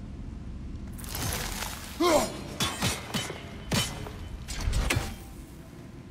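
An axe swings and strikes with sharp thuds.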